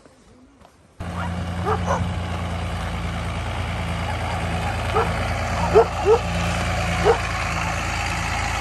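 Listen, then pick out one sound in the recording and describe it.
A pickup truck engine idles with a steady rumble.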